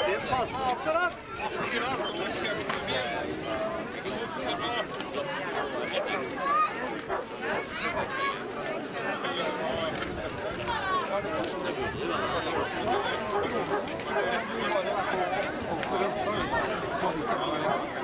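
A crowd of men, women and children chatter all around outdoors.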